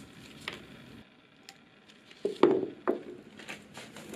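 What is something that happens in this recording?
Plastic pieces drop and tap onto a wooden surface.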